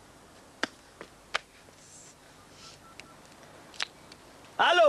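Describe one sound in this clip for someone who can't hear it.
Phone buttons click as a man dials.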